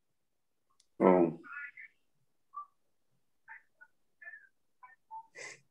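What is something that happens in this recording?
A man speaks softly over a phone or online call.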